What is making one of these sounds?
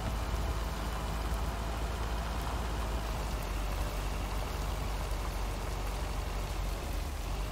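Tyres rumble over a gravel road.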